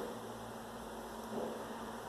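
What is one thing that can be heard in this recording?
A plastic bottle is squeezed, pouring thick liquid into a cup.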